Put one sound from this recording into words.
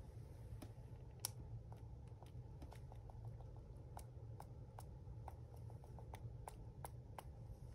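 Bristles of a brush are flicked rapidly, making light ticking sounds.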